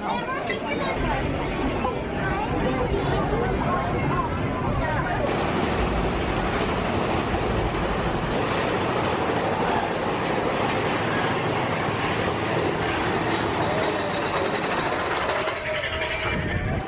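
A ride train rumbles steadily along its track.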